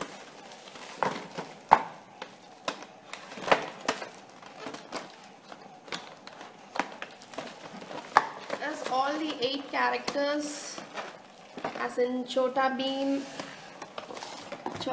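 A plastic box crackles and taps as it is handled.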